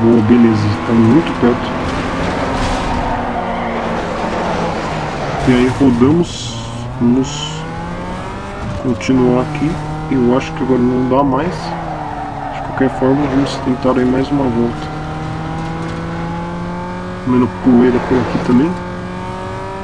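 Tyres screech while a car skids around corners.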